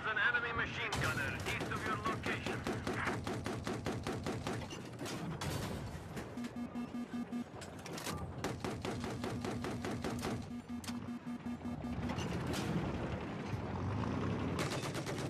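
A heavy machine gun fires in rapid bursts.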